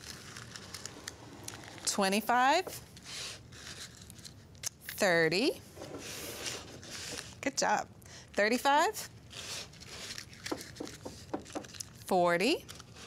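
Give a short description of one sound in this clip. Paper cupcake liners rustle softly as hands handle them.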